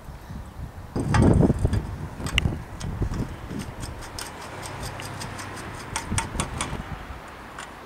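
Metal bearing parts click and clink as they are pressed into a bicycle frame.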